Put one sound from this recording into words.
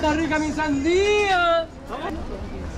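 A woman calls out loudly nearby at the start.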